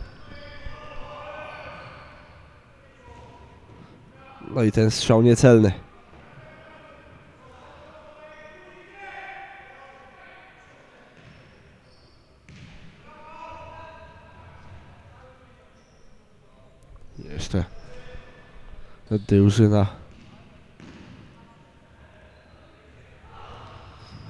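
Players' shoes squeak and thud on a hard indoor floor.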